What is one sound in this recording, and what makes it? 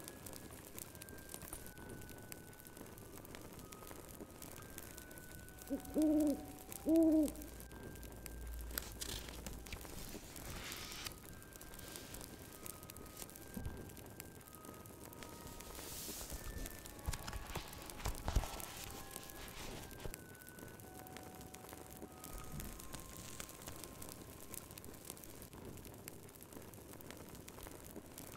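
A fire crackles softly in a hearth.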